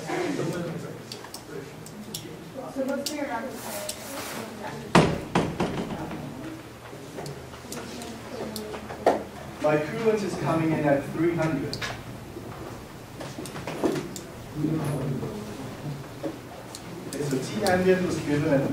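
A man lectures calmly to a class in a room with a slight echo.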